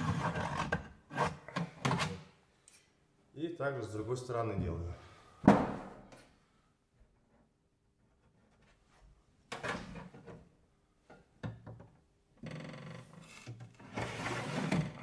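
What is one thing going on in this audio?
A hand tool taps and scrapes against a stiff sheet of roofing material.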